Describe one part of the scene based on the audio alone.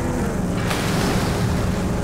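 Water splashes under a vehicle's wheels.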